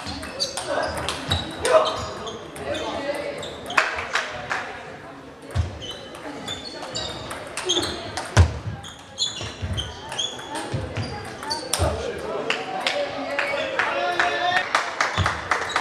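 Table tennis balls click rapidly on tables and paddles in a large echoing hall.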